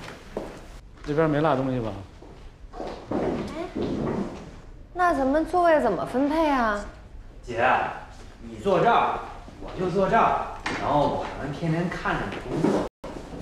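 A young woman speaks playfully and sweetly, close by.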